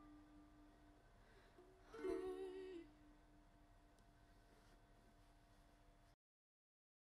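A ukulele is strummed softly.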